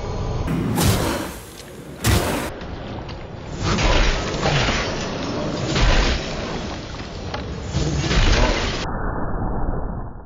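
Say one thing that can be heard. Magic energy crackles and whooshes in bursts.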